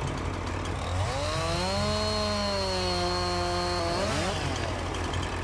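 A chainsaw revs and cuts into a tree trunk.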